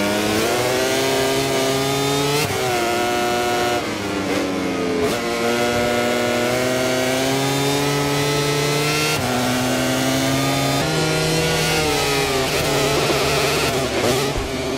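A motorcycle engine screams at high revs, rising and falling as it shifts gears.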